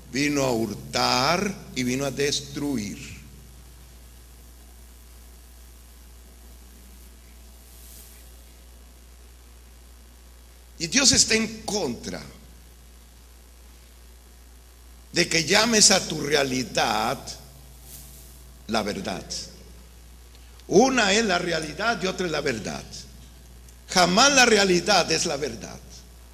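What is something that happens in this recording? A man preaches with animation through a microphone in a reverberant hall, pausing between phrases.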